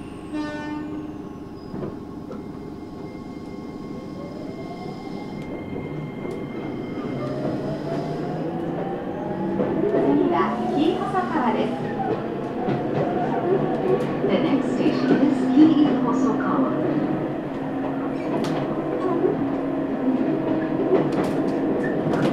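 A train hums and rumbles along the tracks, growing louder as it picks up speed.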